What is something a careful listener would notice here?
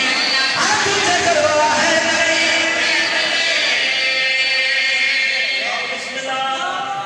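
A crowd of men chants along loudly in unison.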